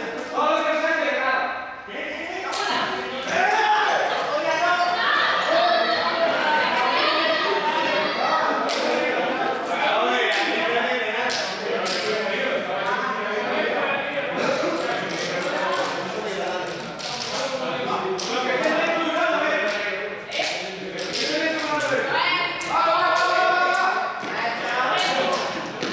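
Young people talk and shout over each other, echoing in a large hall.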